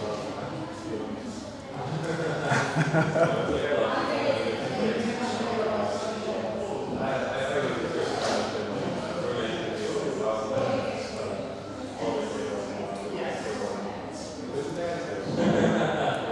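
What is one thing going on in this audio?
A man talks calmly on a phone nearby.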